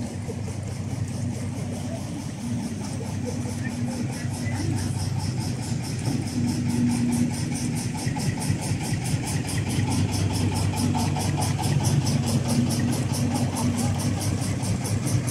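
A boat engine chugs steadily nearby.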